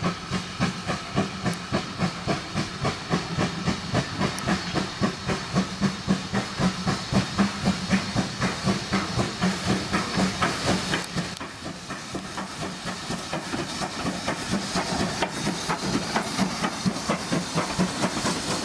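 A steam locomotive chuffs rhythmically as it approaches.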